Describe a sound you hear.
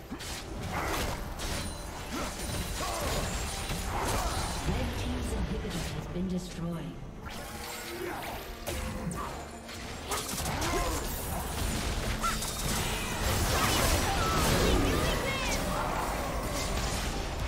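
Magic spells and hits burst and crackle in a fast game battle.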